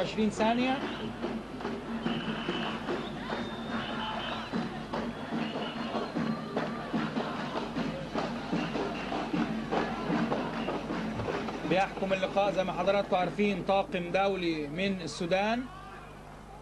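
A large crowd murmurs and cheers in an open stadium.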